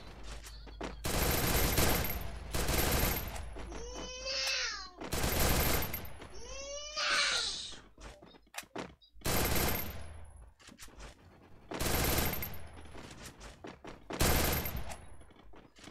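Gunshots fire in bursts from a video game.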